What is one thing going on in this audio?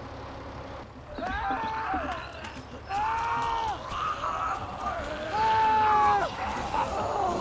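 A woman calls out urgently.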